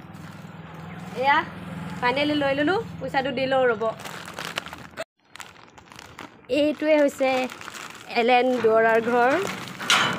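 A plastic bag crinkles in a hand.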